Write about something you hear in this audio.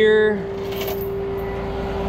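A chain rattles and clinks.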